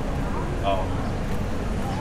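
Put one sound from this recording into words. A young man and a young woman chat quietly as they walk past.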